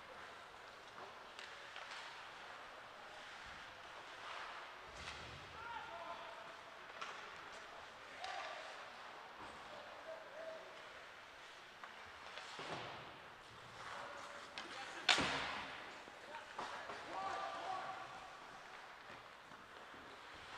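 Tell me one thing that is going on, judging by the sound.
Skates scrape and hiss across ice in a large echoing rink.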